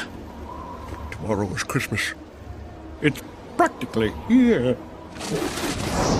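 A man speaks with a gravelly, sneering voice.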